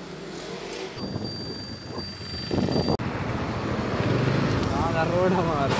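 A motor scooter engine hums while riding along a road.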